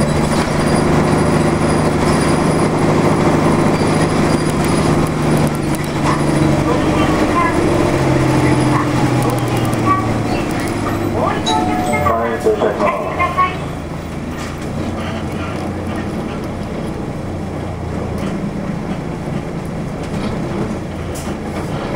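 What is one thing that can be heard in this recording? Tyres roll along asphalt.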